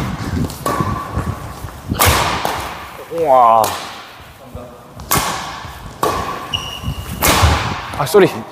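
A shuttlecock is struck with a racket with sharp smacks in an echoing hall.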